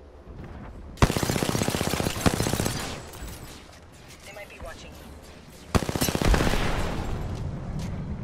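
A rifle fires rapid loud bursts.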